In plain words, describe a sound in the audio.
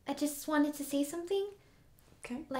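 Another young woman speaks calmly close by.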